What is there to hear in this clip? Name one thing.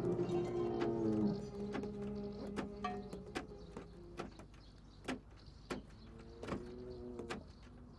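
A hammer strikes metal in slow, steady blows.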